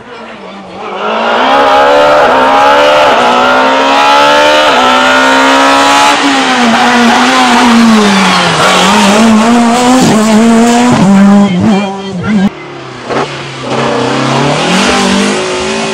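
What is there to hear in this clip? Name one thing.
A second rally car engine roars and revs up and down as the car races past.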